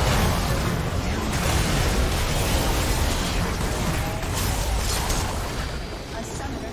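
Game spells and attacks crackle and boom in a busy battle.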